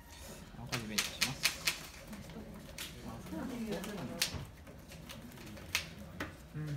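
Playing cards tap and slide on a soft mat.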